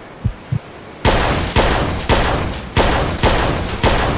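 A pistol fires a series of shots.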